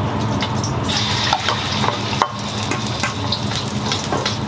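Egg batter sizzles loudly in a hot wok.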